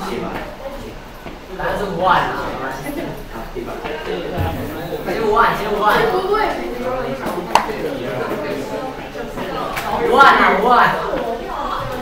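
Young people talk and chatter nearby in a room.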